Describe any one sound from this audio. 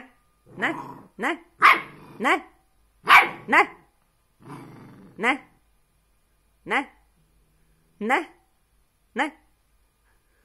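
A puppy barks in short, high yelps, close by.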